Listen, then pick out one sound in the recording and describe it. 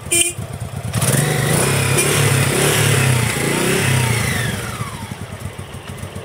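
A V-twin cruiser motorcycle is revved, rising and falling in pitch.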